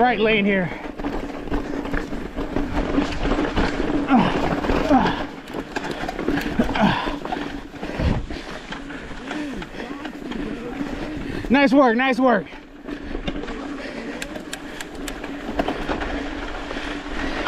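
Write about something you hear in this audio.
Bike tyres crunch and rattle over rocky dirt.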